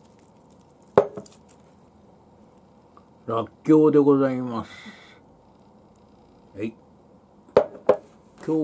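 A glass dish clinks against a table.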